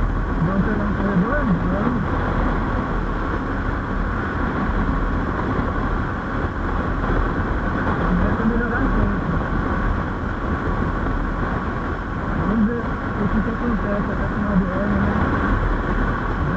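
A motorcycle engine hums steadily at highway speed.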